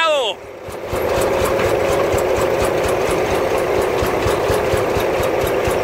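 A truck's diesel engine runs with a steady, rattling drone close by.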